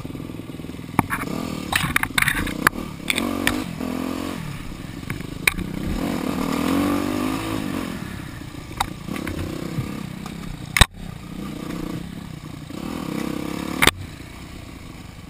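Motorbike tyres rattle and bump over a rough dirt track.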